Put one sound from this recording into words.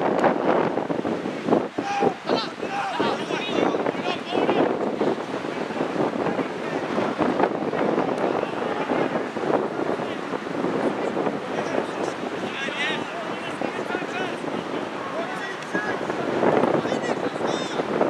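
Young men shout and call out to each other across an open field, some distance away.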